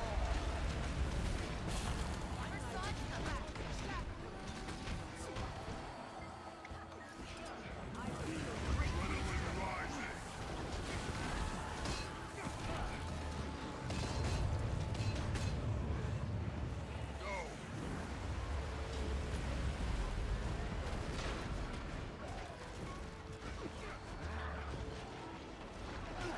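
Deep booming impacts rumble over and over.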